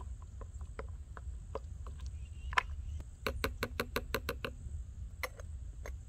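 A spoon stirs and clinks against a metal pot.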